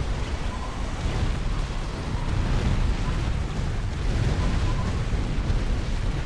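Gunfire and explosions rumble and crackle without pause.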